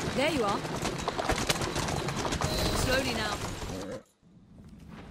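A horse-drawn carriage rumbles along at speed.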